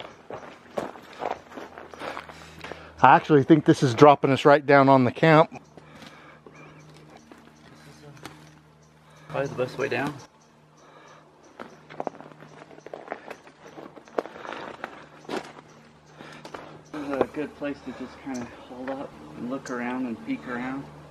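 Footsteps crunch on dry twigs and loose dirt.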